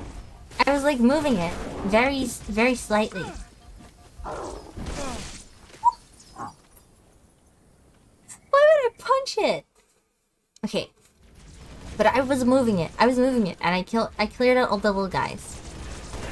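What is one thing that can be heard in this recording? A young woman talks animatedly and close into a microphone.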